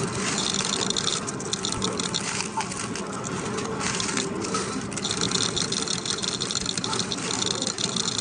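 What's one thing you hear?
Coins clink and slide as a pusher tray moves back and forth.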